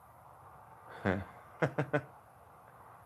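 A middle-aged man laughs briefly.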